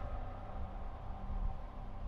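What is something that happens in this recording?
Spaceship engines rumble low and steady.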